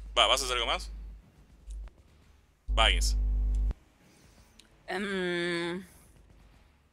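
A man speaks in short, animated bursts over an online call.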